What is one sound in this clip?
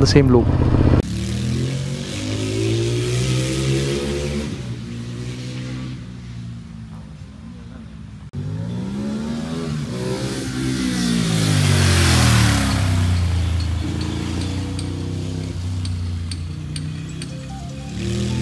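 A motorcycle engine roars as it races past, rising and falling in pitch.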